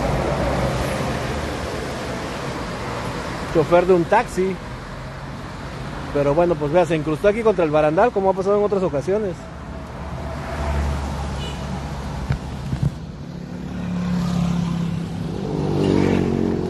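A bus engine rumbles steadily nearby.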